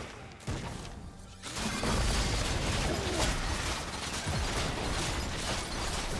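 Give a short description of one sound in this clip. Game spell effects and attacks burst and clash in quick succession.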